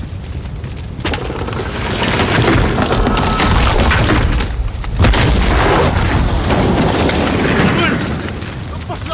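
Explosions and gunfire boom loudly.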